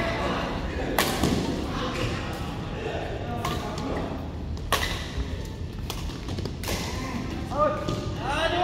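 Shuttlecocks are struck by rackets with sharp taps.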